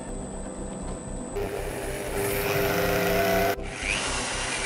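A drill press motor whirs steadily.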